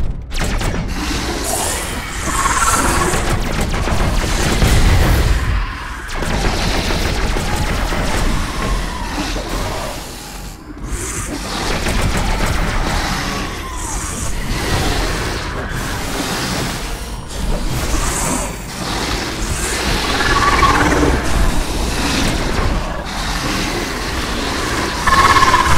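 A heavy hammer smashes into monsters with crunching blows.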